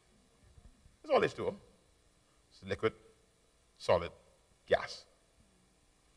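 A man speaks with animation through a microphone, in short bursts.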